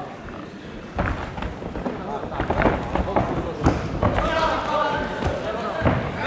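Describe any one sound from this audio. Punches thud against a fighter's body.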